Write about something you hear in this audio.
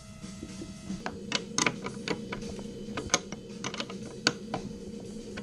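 Small metal parts clink and knock.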